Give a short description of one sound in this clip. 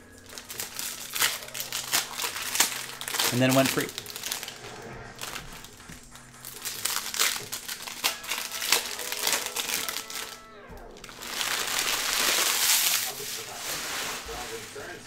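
Plastic wrappers crinkle and tear.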